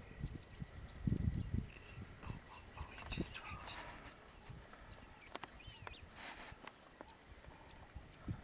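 A wildebeest's hooves thud softly on dry ground as it walks.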